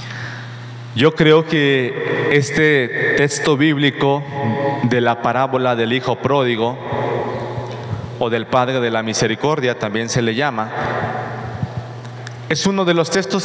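A man speaks with animation into a microphone in an echoing hall.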